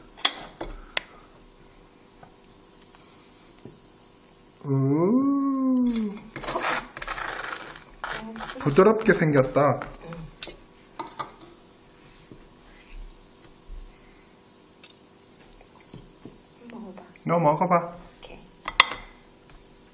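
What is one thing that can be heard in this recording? A metal spoon clinks and scrapes against a plate.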